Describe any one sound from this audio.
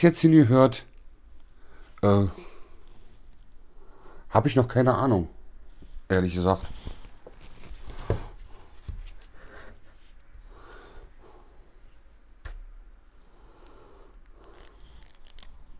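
Small plastic parts click and rattle as they are handled.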